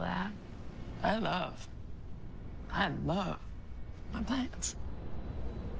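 A second young woman answers quietly, close by.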